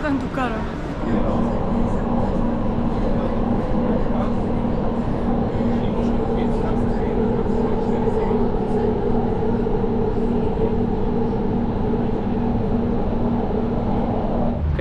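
A train hums steadily as it speeds along a track.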